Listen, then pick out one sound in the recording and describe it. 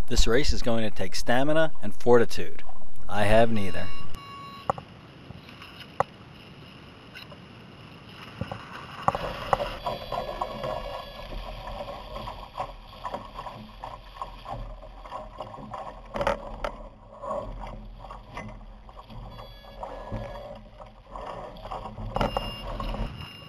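Water splashes against a small boat's hull.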